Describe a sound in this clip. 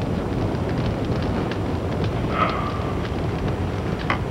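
A woman walks down stairs.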